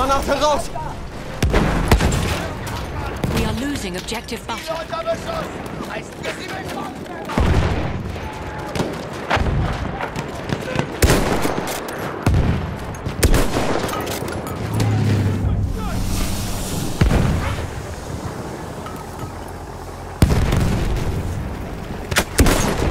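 Gunshots crack sharply, again and again.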